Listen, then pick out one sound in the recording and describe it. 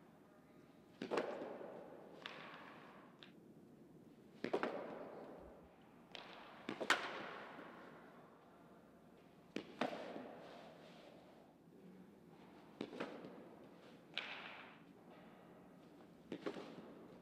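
Softballs pop into a leather catcher's mitt, echoing in an indoor room.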